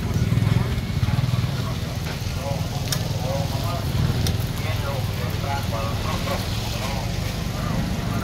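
Tongs clink against a grill.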